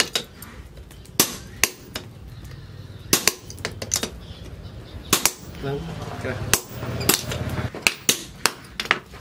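A hammer strikes hot metal on an anvil with sharp ringing clangs.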